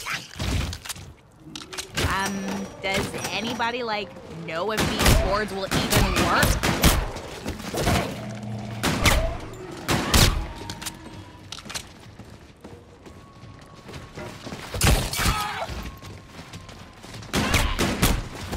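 Gunshots fire in sharp bursts.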